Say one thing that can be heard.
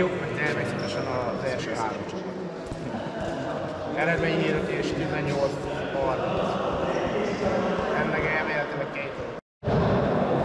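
A middle-aged man talks to a group in an echoing hall.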